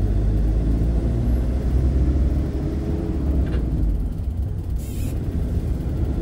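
Tyres rumble low on the road.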